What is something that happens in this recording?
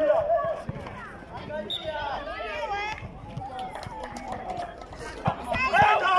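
Young men shout and call out to each other outdoors.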